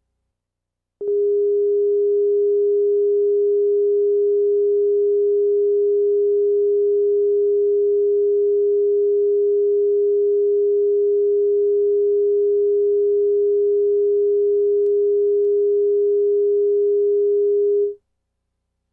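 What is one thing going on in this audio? A steady, even test tone sounds and then cuts off.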